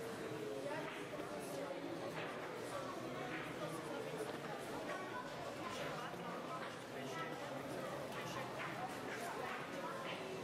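A chess clock button is pressed with a click.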